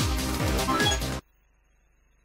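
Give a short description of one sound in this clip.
Video game music plays loudly, then cuts off abruptly.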